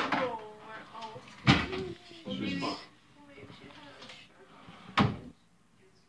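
A wooden drawer slides and knocks.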